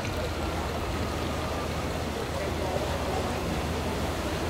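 A crowd of adults chatters in a low murmur outdoors.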